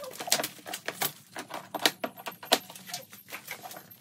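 Scissors snip through plastic straps.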